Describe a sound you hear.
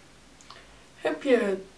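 A girl speaks with animation close to a microphone.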